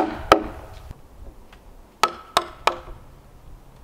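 A hammer knocks sharply on wood.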